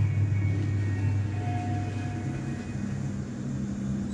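Lift doors slide shut.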